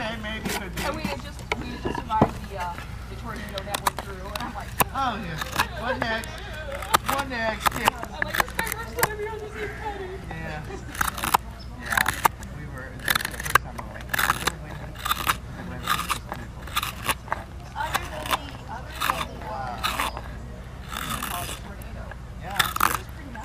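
A knife scrapes and shaves wood in short, repeated strokes.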